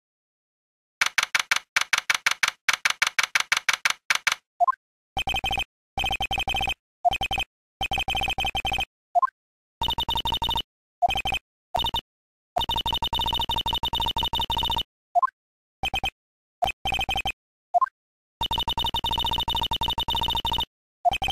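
Rapid electronic blips chatter in quick bursts, like text being typed out.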